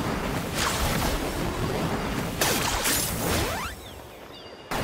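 Loud whooshing effects sweep up and down.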